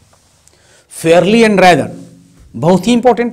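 A man speaks loudly and with animation, close to the microphone.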